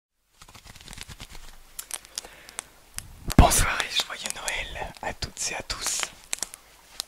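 Fingers tap and click close to a microphone.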